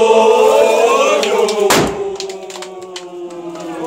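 Men clap their hands.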